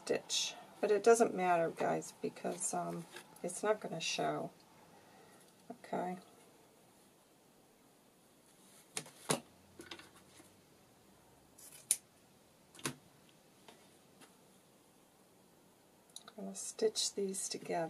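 Paper rustles as hands handle it.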